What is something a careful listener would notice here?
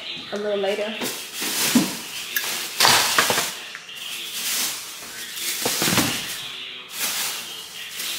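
A paper bag rustles and crinkles close by.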